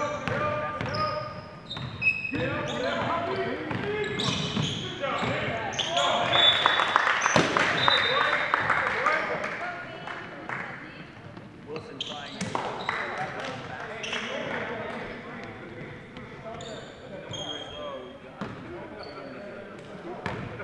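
Spectators and players shout and cheer in a large echoing gym.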